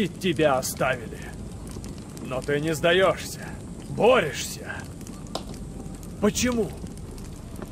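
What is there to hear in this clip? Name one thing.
A man speaks in a low, stern voice, close by.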